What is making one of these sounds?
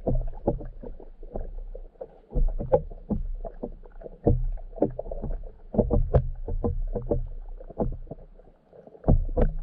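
Fish nudge against a hard shell underwater, making dull knocks and taps.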